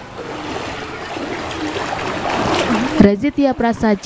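Feet splash and slosh through shallow floodwater.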